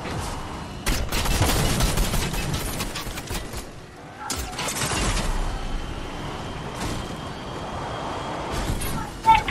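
A game car engine roars and revs as it drives over rough ground.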